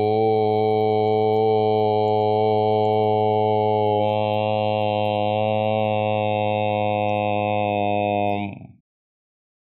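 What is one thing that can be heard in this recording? An elderly man chants a long, steady, low tone.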